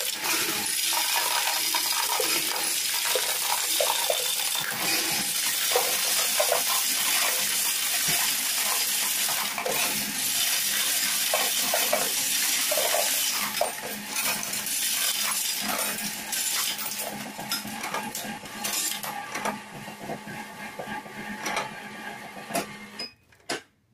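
A machine motor whirs steadily, then stops.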